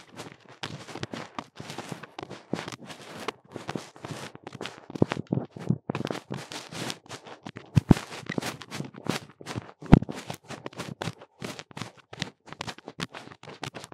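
A second young woman talks and laughs close to a microphone.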